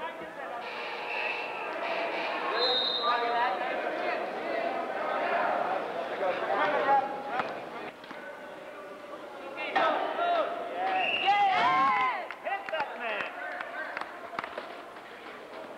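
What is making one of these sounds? Men and women shout and call out in a large echoing hall.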